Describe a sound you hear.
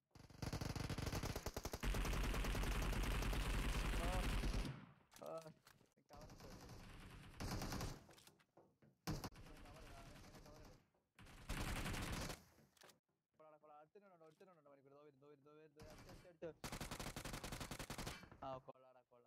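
Automatic gunfire rattles in loud, rapid bursts.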